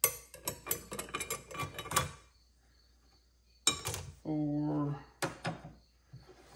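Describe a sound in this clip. Metal parts clink and rattle as they are handled.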